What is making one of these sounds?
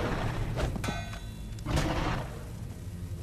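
A creature snarls close by.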